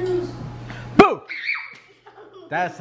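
A young girl shrieks excitedly.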